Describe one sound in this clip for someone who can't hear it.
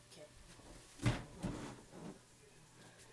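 Bare feet thump onto a wooden stool.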